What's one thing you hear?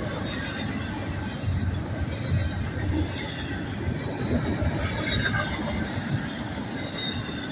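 A long freight train rumbles and clatters steadily past nearby.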